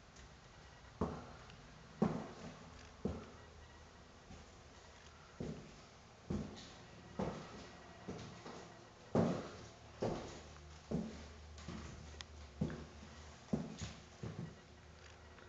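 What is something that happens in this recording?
Footsteps thud on a wooden floor in an empty, echoing room.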